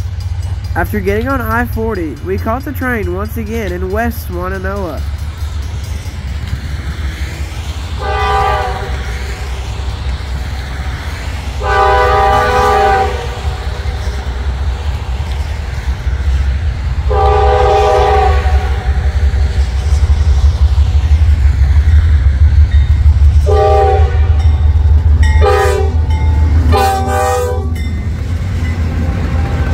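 A diesel locomotive rumbles closer and grows louder.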